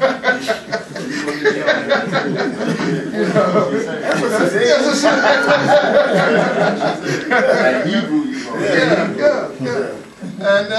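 A man reads aloud with a strong, preaching delivery in a room with some echo.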